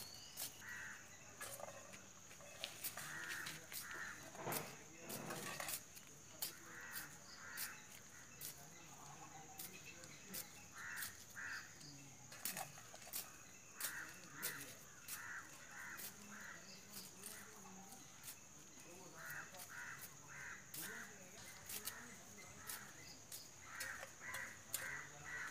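A small hand tool scrapes and digs into dry soil close by.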